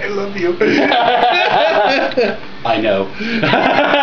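A man laughs loudly up close.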